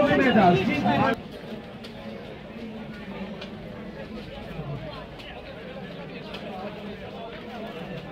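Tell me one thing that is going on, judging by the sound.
Plastic bottles clatter and crinkle underfoot.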